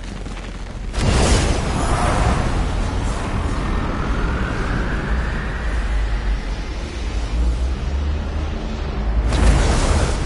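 A powerful energy beam roars with a deep, rumbling hum.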